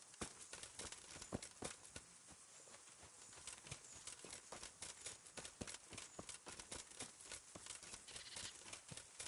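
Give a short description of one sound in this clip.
Footsteps brush through grass and crunch on a dirt path.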